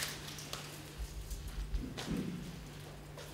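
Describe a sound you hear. Branches drop onto a wooden floor with a thud.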